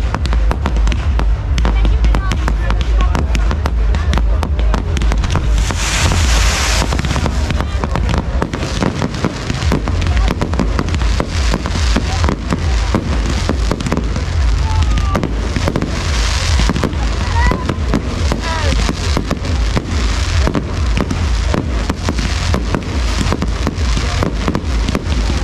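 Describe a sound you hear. Fireworks crackle and bang rapidly overhead.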